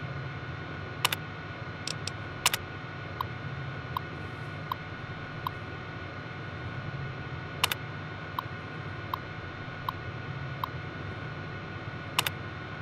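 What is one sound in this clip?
A keyboard key clacks sharply a few times.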